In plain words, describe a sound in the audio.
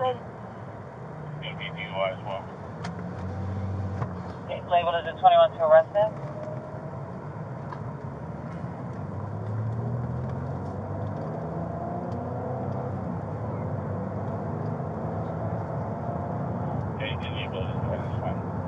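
A car engine hums and tyres rumble on the road while driving.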